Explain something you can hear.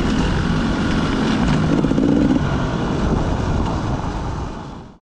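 A dirt bike engine revs loudly up close.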